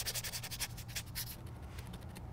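A small brush scrubs rusty metal with quick, scratchy strokes.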